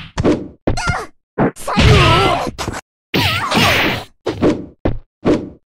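Blows land with sharp, heavy smacks in a quick fight.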